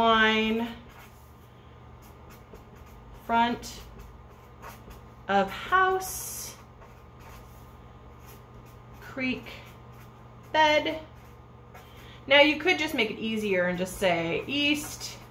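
A felt-tip pen scratches softly across paper.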